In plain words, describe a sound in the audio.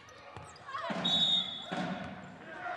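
A referee's whistle blows a short, shrill blast.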